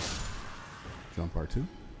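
A heavy blade swings through the air with a whoosh.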